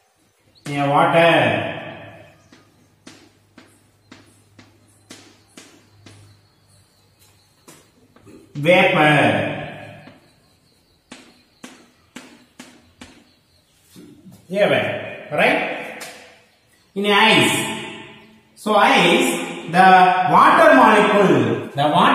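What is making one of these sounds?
A man speaks loudly and clearly in a room with some echo.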